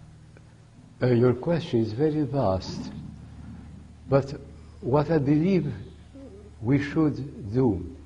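A woman speaks clearly from a little way off in a large room.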